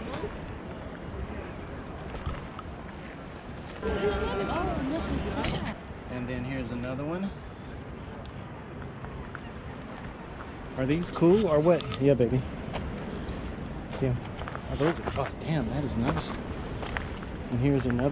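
Small waves lap and splash against rocks.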